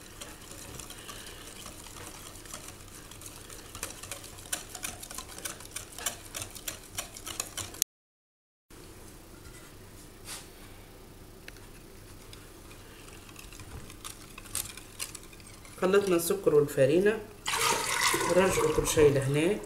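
A whisk clinks and scrapes quickly against a glass bowl.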